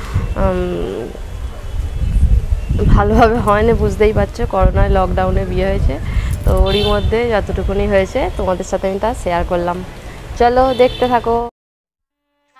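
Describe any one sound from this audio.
A young woman talks animatedly, close to a microphone.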